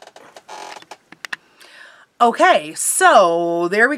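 A woman speaks with animation close to a microphone.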